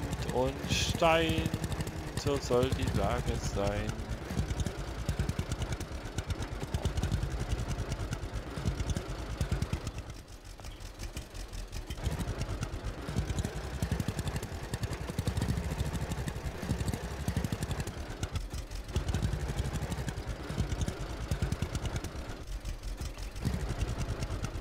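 A small tractor engine chugs steadily and rises and falls in revs.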